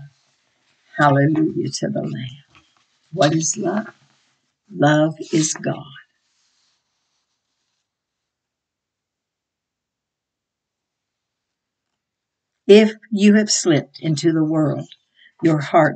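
An elderly woman speaks calmly and close to a microphone, pausing between phrases.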